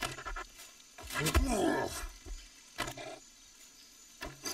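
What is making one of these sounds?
A creature growls and snarls close by.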